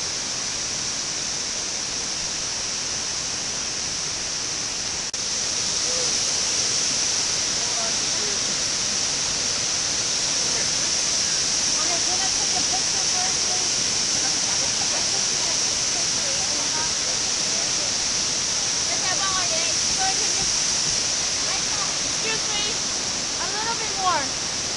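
A waterfall roars loudly and steadily close by.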